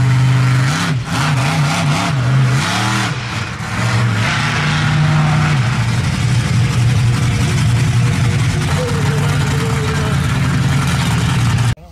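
A monster truck engine roars and revs loudly.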